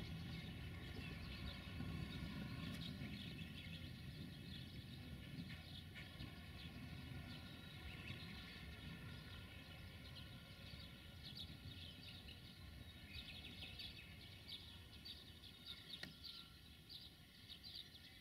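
An electric locomotive rumbles slowly along the track.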